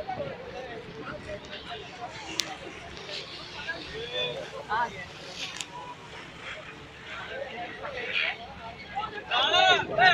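Seagulls cry overhead.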